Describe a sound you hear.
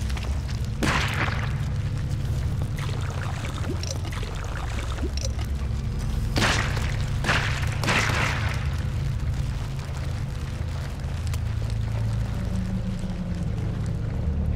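Footsteps scuff on stone and damp ground.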